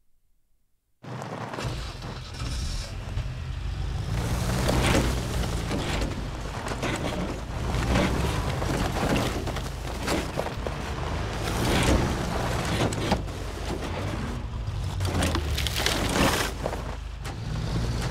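An off-road vehicle's engine rumbles as it climbs over rough ground.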